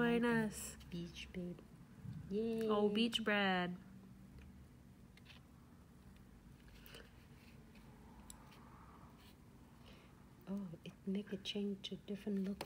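A tool taps and clicks lightly against hard nails.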